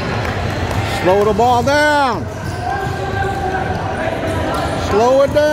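Young men shout to each other in a large echoing gym.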